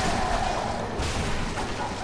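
A blade strikes flesh.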